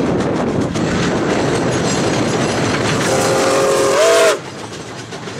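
A steam locomotive chugs loudly and puffs close by.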